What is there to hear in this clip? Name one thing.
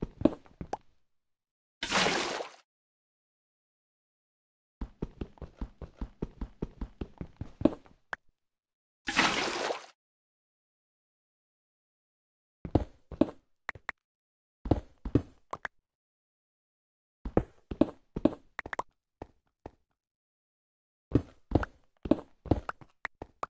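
Stone blocks break with crunching thuds.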